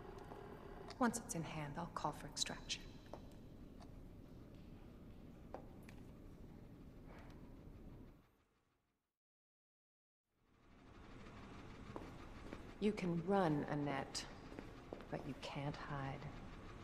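A young woman speaks calmly and quietly.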